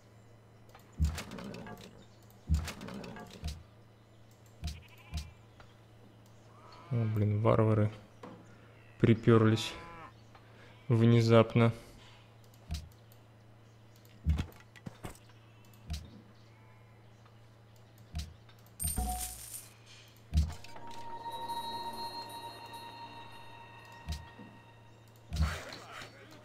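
Short soft game interface clicks sound now and then.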